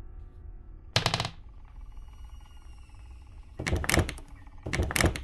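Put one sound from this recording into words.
A locked door handle rattles.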